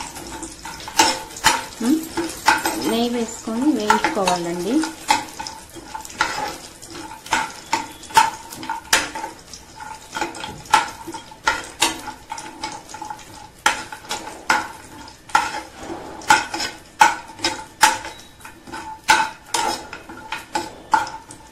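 A metal spoon scrapes and clinks against a metal pan.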